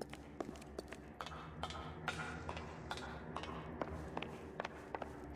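Footsteps clatter on metal stairs.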